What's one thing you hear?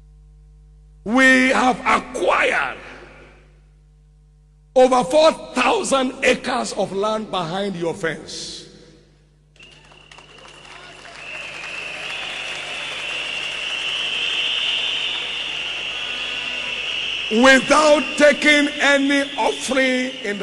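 A man preaches loudly and with animation over a microphone in a large hall.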